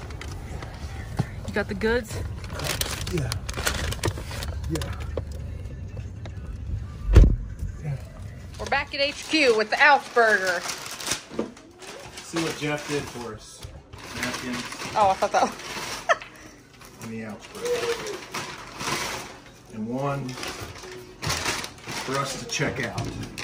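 A paper bag crinkles and rustles.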